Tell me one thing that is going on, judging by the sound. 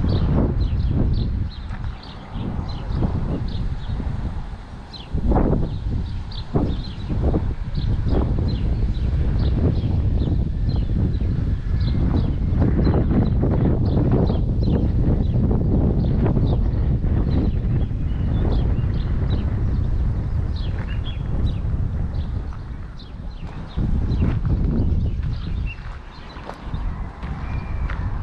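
Wind buffets the microphone outdoors in gusts.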